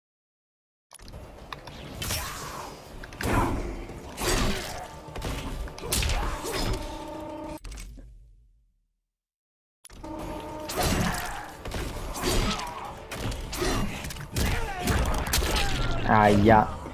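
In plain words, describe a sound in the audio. Punches and kicks thud and smack in a fight.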